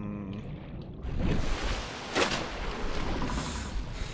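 Water splashes and churns as something breaks through the surface.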